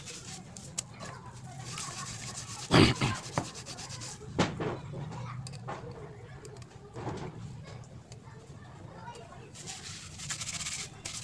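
Hands scrub a metal water tap in soapy water, with splashing and sloshing.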